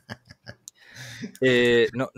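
A middle-aged man laughs over an online call through a microphone.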